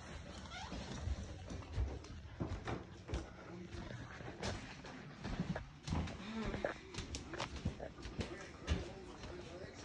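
Objects knock and clatter as they are handled close by.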